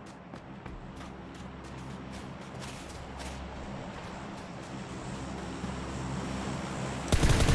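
Footsteps run quickly over dirt and grass.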